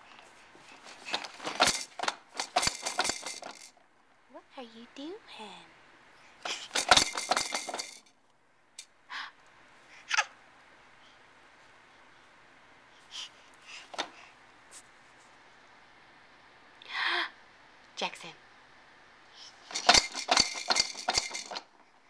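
A baby squeals loudly in bursts.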